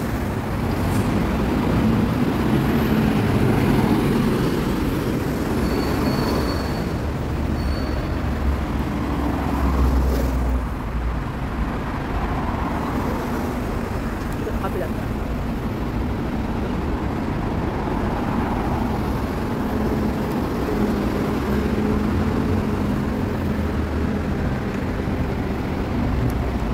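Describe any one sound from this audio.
Road traffic rumbles steadily outdoors.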